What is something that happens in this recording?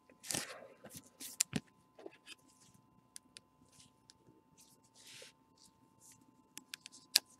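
Plastic card sleeves and wrappers crinkle and rustle under gloved hands.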